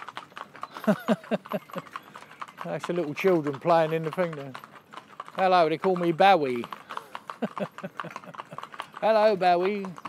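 Horses' hooves clop steadily on a paved road.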